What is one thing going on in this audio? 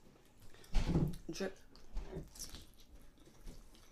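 A young woman chews food close to the microphone.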